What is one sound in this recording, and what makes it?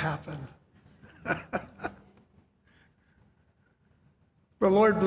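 A middle-aged man chuckles.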